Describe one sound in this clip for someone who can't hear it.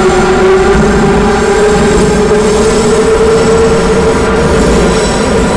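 A subway train's motor hums steadily and slowly rises in pitch.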